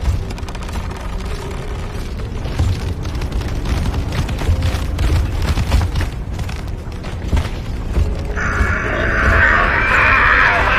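Heavy boots thud on a metal floor.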